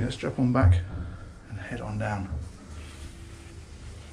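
Footsteps thud on stairs going down.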